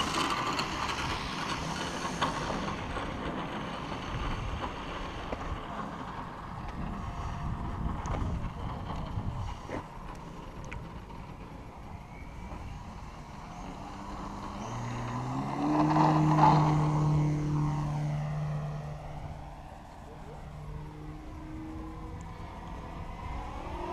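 A small model jet engine whines and roars as the plane races off and flies by.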